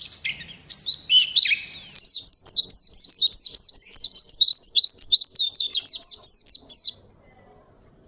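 A small bird sings a fast, high, twittering song up close.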